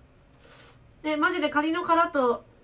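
A young woman speaks close by, with animation.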